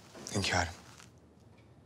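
A man speaks calmly and respectfully nearby.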